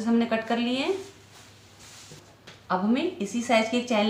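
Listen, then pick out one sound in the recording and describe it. Cloth rustles as it is turned over.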